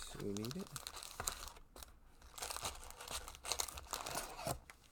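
Foil card packs rustle as they are pulled from a box.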